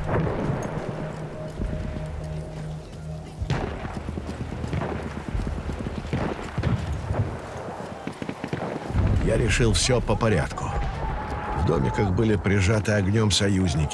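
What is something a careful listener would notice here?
Footsteps crunch on gravel and stones.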